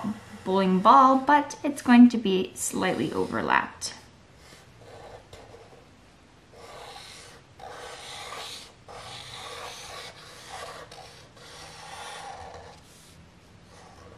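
A marker squeaks and scratches across paper in short strokes.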